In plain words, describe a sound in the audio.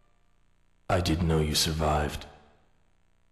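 A young man speaks calmly and close.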